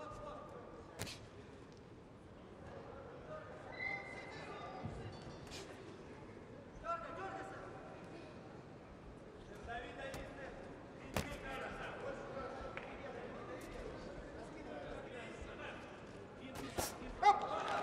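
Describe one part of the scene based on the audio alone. Boxing gloves thud sharply as punches land.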